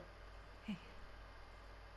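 A young woman says a short greeting softly.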